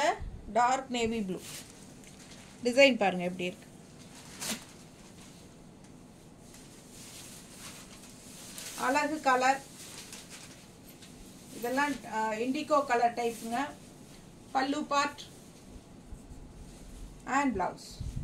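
A woman speaks calmly and closely, in short bursts with pauses.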